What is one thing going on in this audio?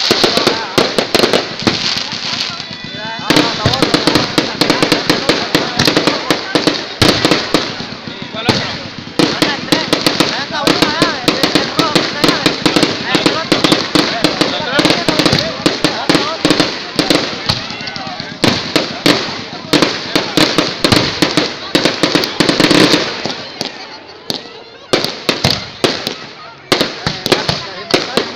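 Fireworks crackle and bang rapidly and loudly nearby.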